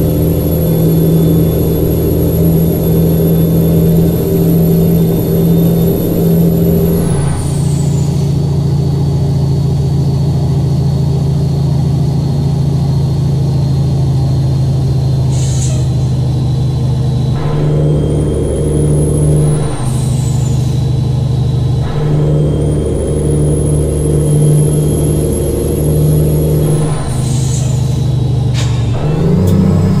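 A heavy truck engine drones steadily, its pitch dropping and rising as gears change.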